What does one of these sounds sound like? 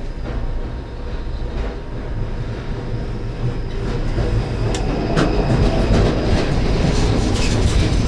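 Another tram passes close by in the opposite direction.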